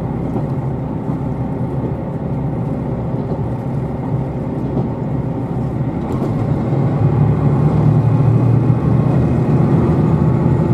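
A train rumbles steadily along the track, growing louder toward the end.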